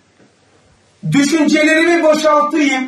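An elderly man reads aloud into a microphone in a steady voice.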